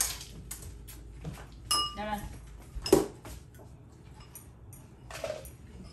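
Chopsticks and spoons clink against bowls.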